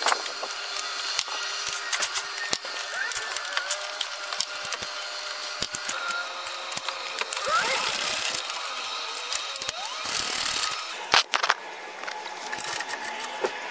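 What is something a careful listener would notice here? A ratchet wrench clicks as bolts are turned under a car.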